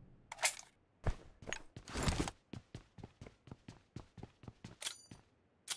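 Footsteps thud quickly and steadily on a hard floor.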